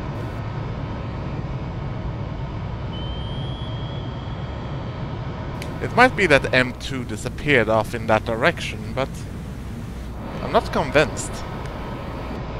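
A torpedo's propeller whirs underwater.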